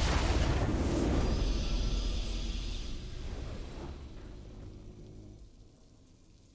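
A triumphant game fanfare sounds loudly and slowly fades away.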